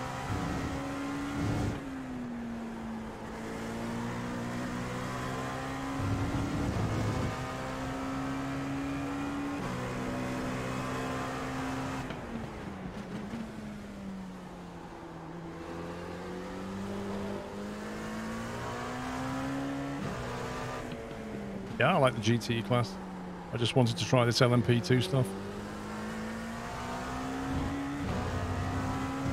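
A racing car engine hums and revs up and down as gears shift.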